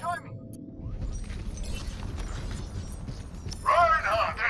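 Rapid gunfire crackles.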